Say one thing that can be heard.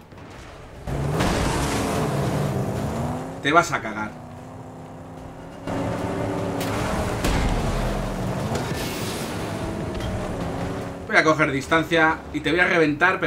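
A car engine roars as the car drives off over rough ground.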